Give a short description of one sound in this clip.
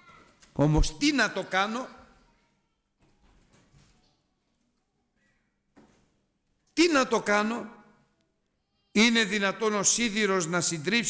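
A middle-aged man speaks with animation into a microphone, with pauses.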